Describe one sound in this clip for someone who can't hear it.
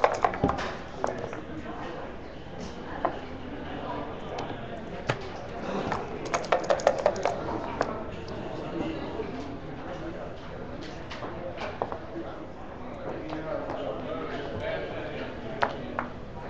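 Plastic checkers click and slide on a wooden board.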